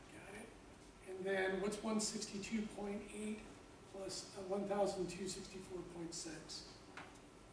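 A man speaks calmly nearby in a quiet room.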